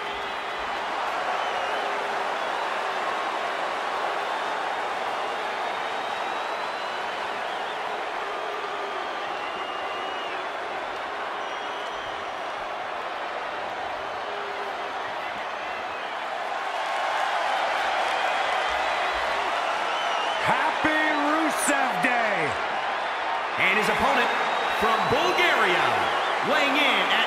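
A large crowd cheers and roars steadily throughout, echoing in a big arena.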